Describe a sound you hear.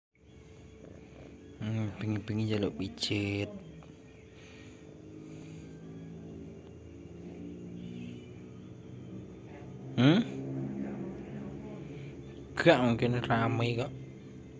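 A cat purrs steadily up close.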